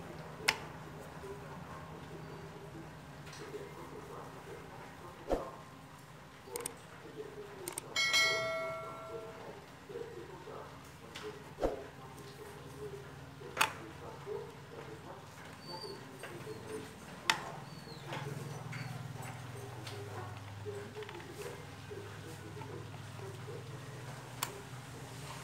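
Metal parts click and knock as a pump shaft is turned by hand.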